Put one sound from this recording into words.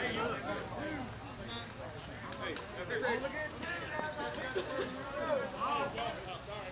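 Several adult players talk and call out to one another outdoors on an open field.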